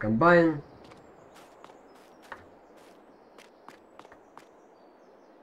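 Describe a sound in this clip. Footsteps tap on a hard concrete floor.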